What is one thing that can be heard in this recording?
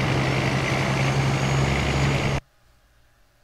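Tyres hiss on a road.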